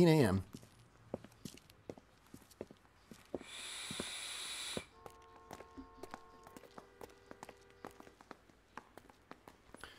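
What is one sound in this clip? Footsteps of two men walk on pavement.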